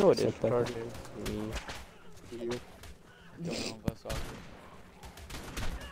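A rifle fires repeated sharp shots.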